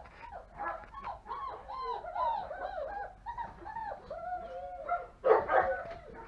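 Puppies whine and whimper in high, bending cries.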